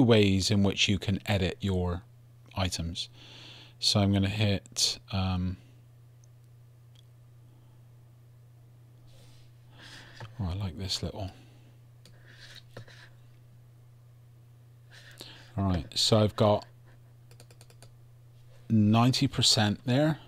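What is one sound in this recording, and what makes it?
A man talks calmly and casually into a close microphone, pausing now and then.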